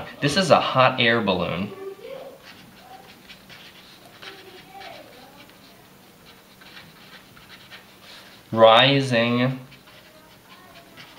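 A felt-tip marker squeaks as it writes on paper.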